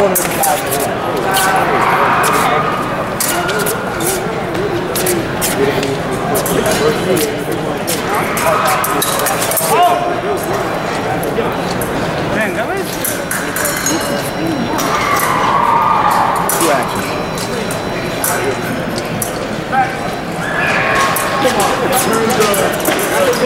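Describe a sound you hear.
Fencers' feet thump and squeak on a metal strip.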